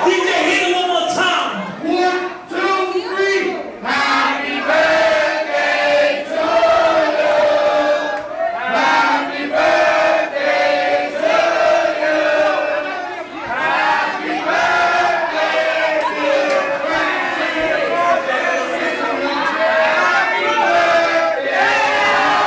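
Loud music plays through a loudspeaker.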